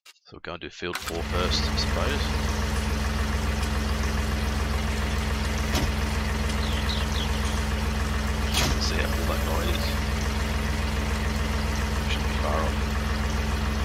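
A tractor engine idles with a steady, low rumble.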